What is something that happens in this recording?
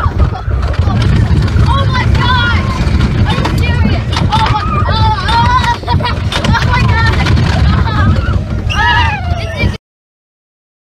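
A roller coaster train rumbles and rattles along its track at speed.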